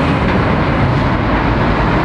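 A car drives past nearby.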